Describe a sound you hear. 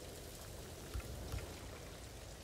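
A soft menu click sounds as a selection changes.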